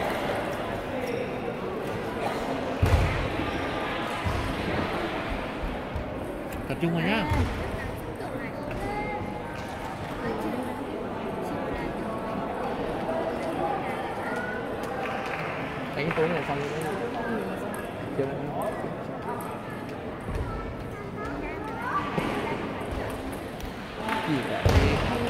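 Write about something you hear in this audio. A table tennis ball clicks off paddles and the table in a large echoing hall.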